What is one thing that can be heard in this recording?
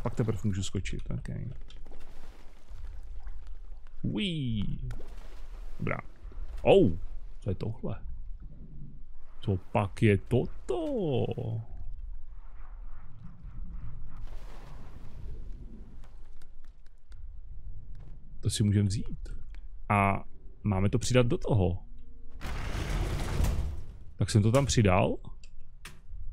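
Water laps and sloshes gently.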